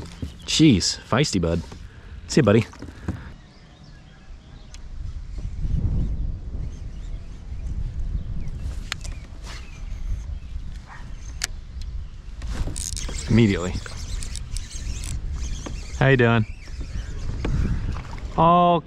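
Wind buffets the microphone outdoors on open water.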